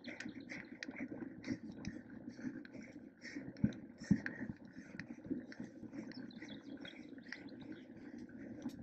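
Bicycle tyres roll and crunch steadily over a dirt trail.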